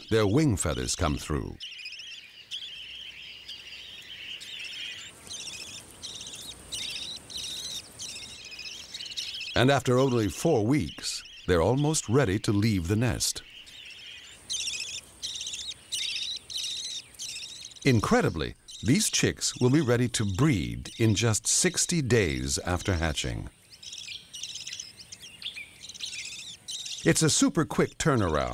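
Budgerigars chirp and chatter in quick, high twitters.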